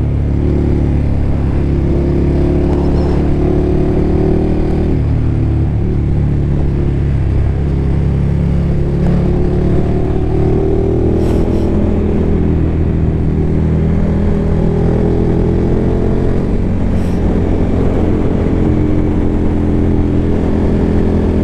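Wind rushes past the rider.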